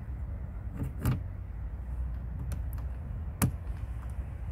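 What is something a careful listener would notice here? Small plastic parts click sharply.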